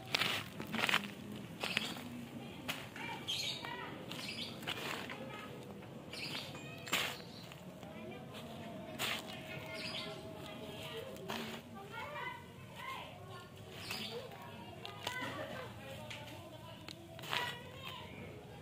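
Handfuls of soil pour into a burlap sack with a soft rustle.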